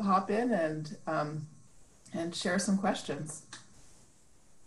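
A woman speaks calmly through an online call.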